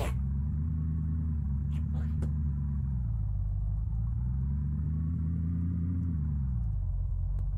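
A car engine hums steadily, its pitch rising and falling as it drives.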